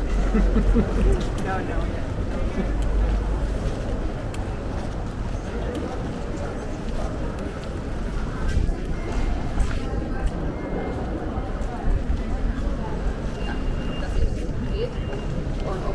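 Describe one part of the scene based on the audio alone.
Footsteps tap on paving stones as people walk by outdoors.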